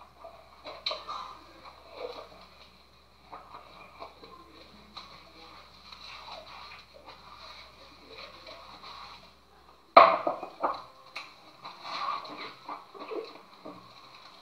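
Hands wash a cup, with wet rubbing and squeaking.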